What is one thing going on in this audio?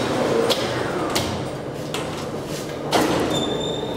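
A key rattles and clicks in a metal lock.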